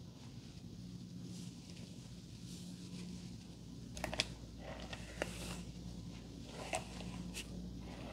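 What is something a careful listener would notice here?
Fingers rustle through hair close by.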